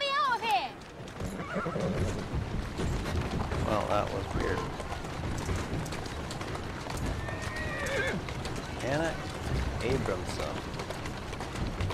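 A horse-drawn carriage rattles over cobblestones.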